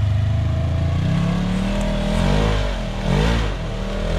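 A utility vehicle engine revs up as it climbs a slope.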